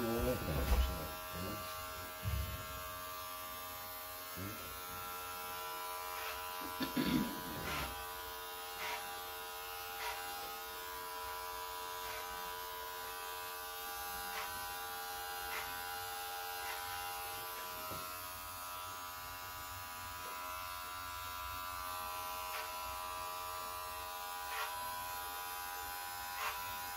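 Scissors snip hair in short, quick cuts.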